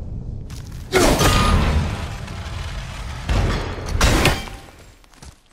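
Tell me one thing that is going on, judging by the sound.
An axe smashes heavily into a wooden wall.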